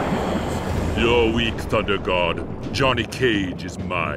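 A man speaks slowly in a deep, menacing voice.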